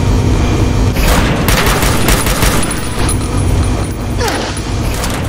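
A rifle fires a quick series of shots.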